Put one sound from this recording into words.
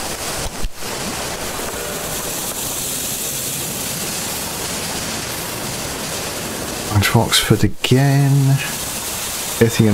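A steam train chugs along a track.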